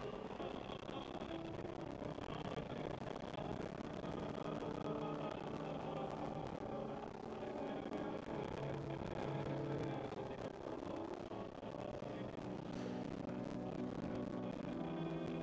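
A congregation sings together in a large echoing room.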